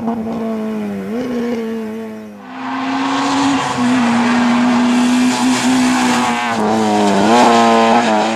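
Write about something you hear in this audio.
A rally car's engine drops in pitch as it shifts gear.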